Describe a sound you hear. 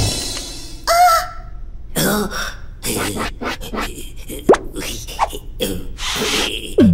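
A high, childlike voice squeals and babbles excitedly, close up.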